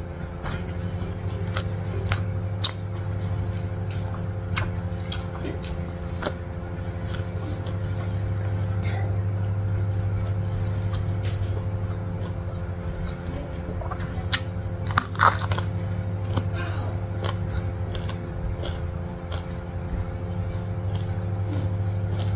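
Fingers rustle and tap through rice and crisp food close to a microphone.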